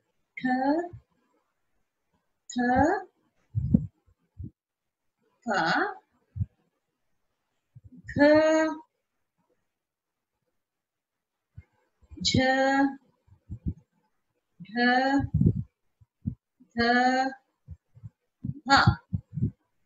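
A woman reads out single syllables slowly and clearly, close to a microphone, with pauses between them.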